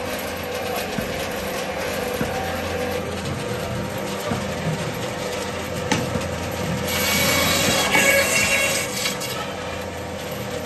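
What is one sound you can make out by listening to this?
A band saw whirs steadily as it cuts through meat and bone.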